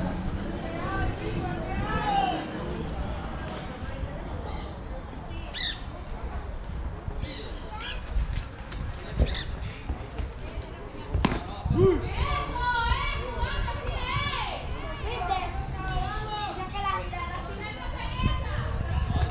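Young men call out across a field in the distance.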